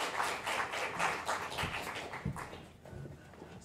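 An audience claps in a large hall, and the applause fades away.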